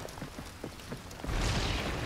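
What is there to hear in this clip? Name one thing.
Rain patters steadily.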